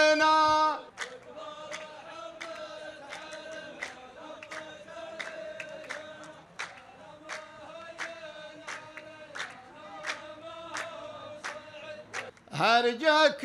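A group of men clap their hands in a steady rhythm.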